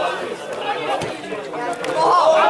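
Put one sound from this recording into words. A football is kicked hard with a thud.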